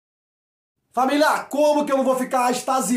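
A man speaks with animation close to the microphone.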